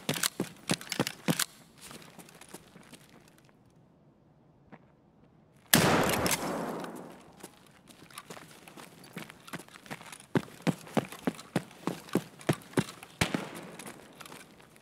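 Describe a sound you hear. Footsteps tread on a hard floor in an echoing space.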